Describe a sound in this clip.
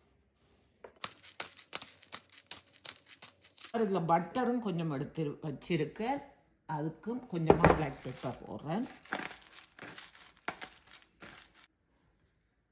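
A pepper grinder grinds with rapid crunching clicks.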